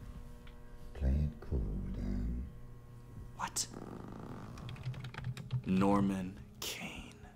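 A young man reacts with loud, fearful exclamations close to a microphone.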